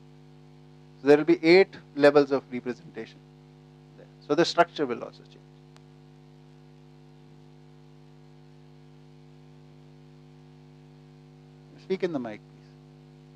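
A middle-aged man speaks calmly in short bursts through a microphone.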